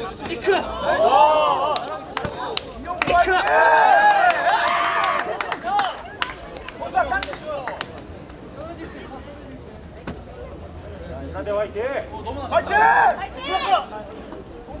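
Young men shout loudly and sharply as they spar.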